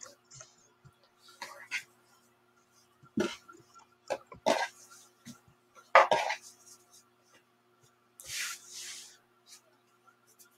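Cloth rustles and slides softly as it is folded and smoothed.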